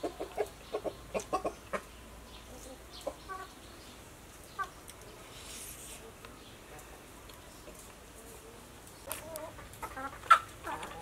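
A spoon scrapes and clinks against a plate.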